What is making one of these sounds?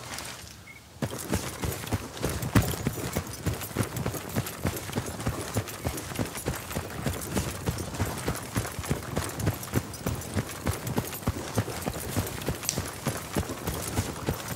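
Footsteps swish through wet grass at a steady walking pace.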